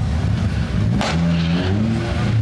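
A car engine revs sharply near the end.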